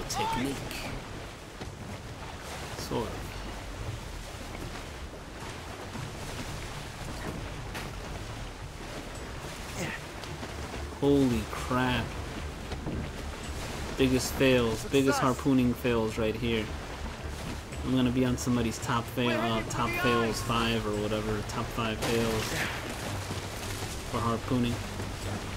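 Waves wash and roll steadily on open sea.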